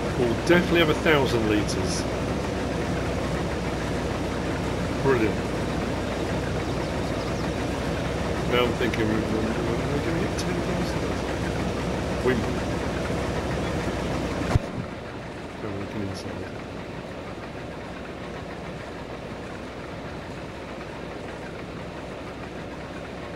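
A combine harvester engine drones steadily, then sounds muffled as if heard from inside the cab.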